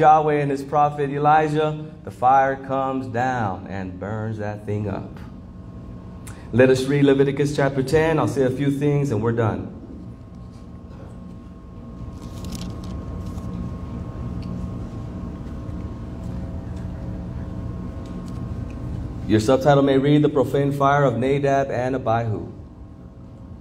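A man preaches with animation into a microphone, heard through loudspeakers in a large room.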